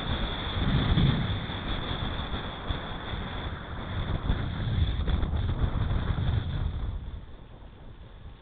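Wind rushes past steadily, outdoors.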